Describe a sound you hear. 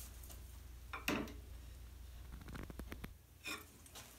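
A lathe motor hums quietly and then stops.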